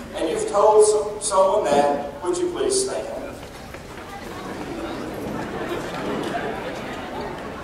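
A crowd murmurs softly in a large hall.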